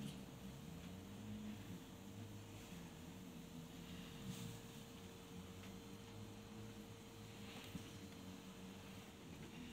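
Rabbits shuffle and rustle softly through grass.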